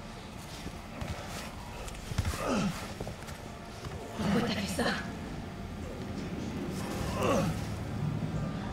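A middle-aged man groans and gasps in pain.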